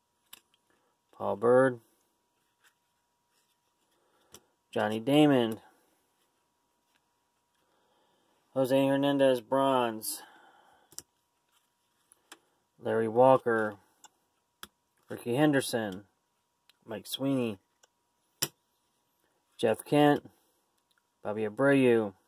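Trading cards rustle and slide against each other as they are shuffled in the hands.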